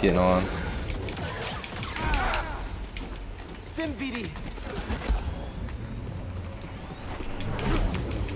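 A creature growls and roars.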